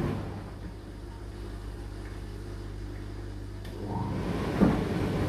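A condenser tumble dryer hums as its drum turns.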